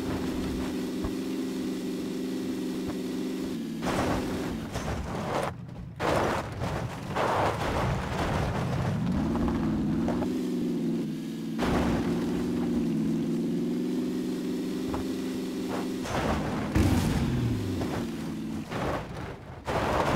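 A car engine drones steadily, revving up and down.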